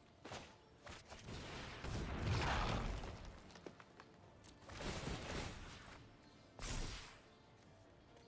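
Soft whooshing game effects play as cards move into place.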